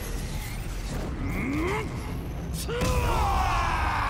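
A loud magical blast crackles and booms.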